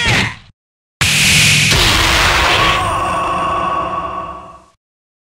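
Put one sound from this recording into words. A big explosion booms and rumbles, then slowly fades.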